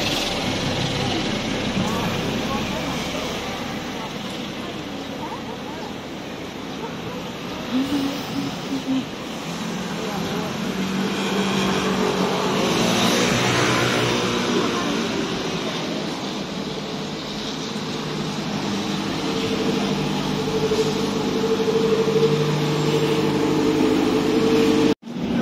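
Traffic hums steadily on a busy street outdoors.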